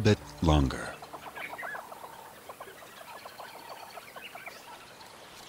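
Hornbills call with rapid, repeated clucking notes.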